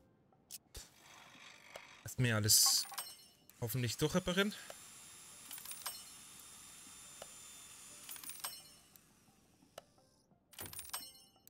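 A video game menu beeps and clicks during a repair minigame.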